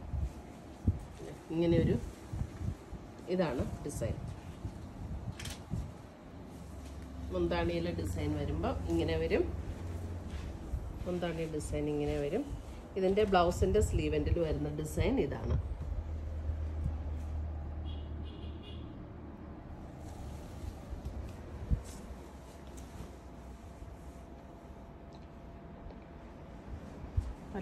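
Cloth rustles as it is unfolded and handled.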